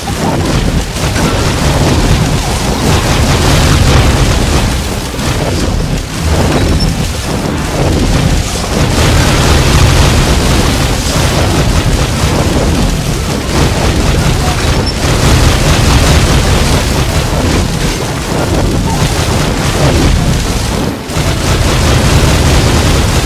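Fire blasts whoosh and explode again and again.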